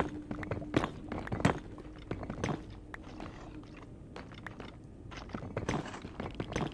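A pickaxe chips at stone blocks with quick, sharp knocks.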